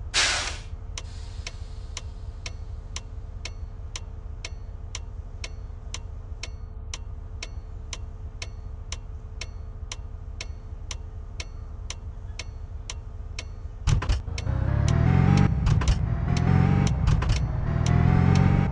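A turn signal ticks steadily.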